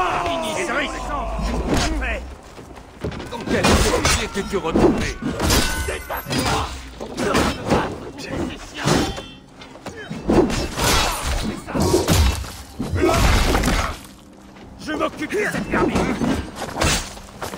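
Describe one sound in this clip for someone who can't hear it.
Blades clash and thud against shields in a fight.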